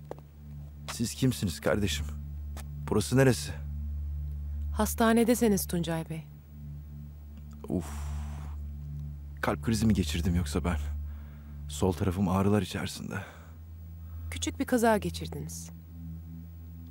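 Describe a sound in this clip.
An elderly man speaks weakly and groggily, close by.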